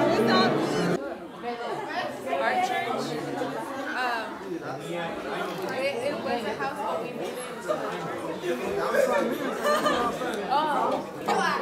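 A crowd of adults chatter casually nearby.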